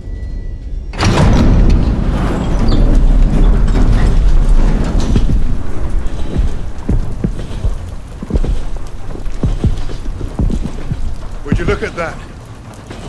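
Strong wind howls outdoors.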